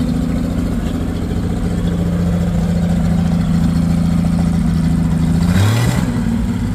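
An old car engine idles with a low, uneven rumble and revs up near the end.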